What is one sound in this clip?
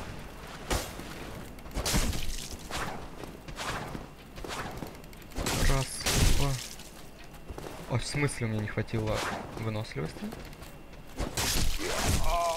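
Swords clash and strike in a video game fight.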